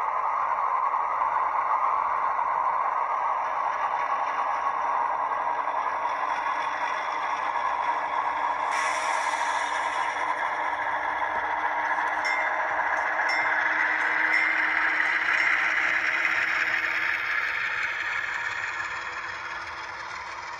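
A model train locomotive hums and whirs as it rolls slowly along the track.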